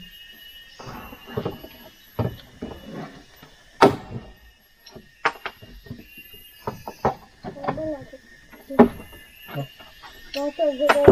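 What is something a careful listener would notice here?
Wood knocks and clatters sharply, close by.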